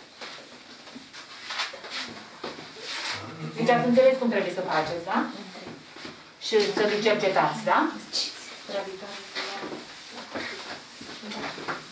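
Cloths swish and rub across a chalkboard.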